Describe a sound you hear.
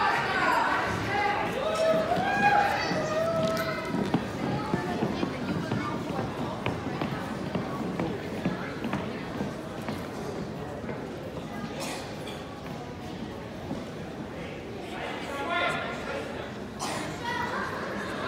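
Dancers' shoes tap and brush on a wooden floor.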